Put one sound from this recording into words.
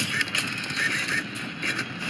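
Fireworks pop and crackle.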